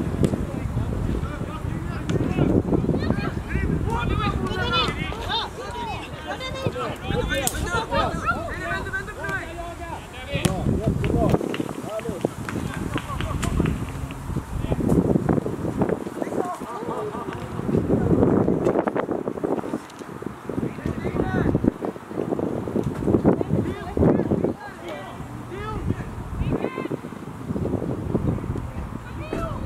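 Players shout to each other across an open field outdoors.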